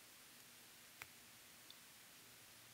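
Wire strippers click shut on a wire.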